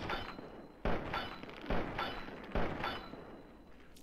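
Pistol shots ring out one after another.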